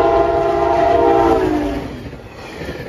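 A train horn blares loudly and drops in pitch as it passes.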